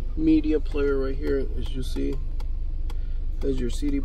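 A car radio plays.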